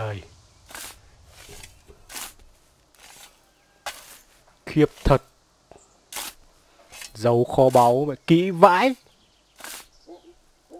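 A shovel scrapes and digs into dry dirt, again and again.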